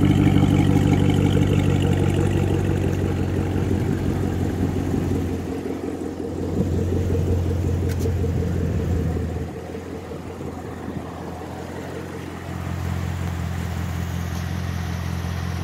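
A car engine idles with a deep, rumbling burble close by.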